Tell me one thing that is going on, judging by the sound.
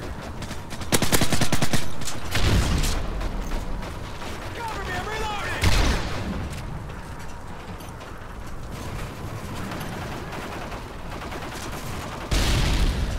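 A rifle fires rapid bursts close by.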